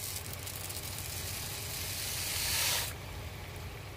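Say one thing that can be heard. Grains pour with a hiss into a pot of hot water.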